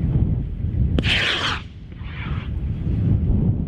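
A missile launches in the distance with a sharp bang and a rushing roar.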